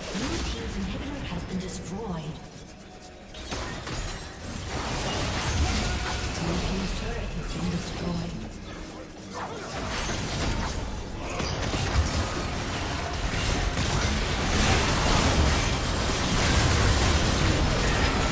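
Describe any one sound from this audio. Game spell effects and attacks crackle and boom in a busy fight.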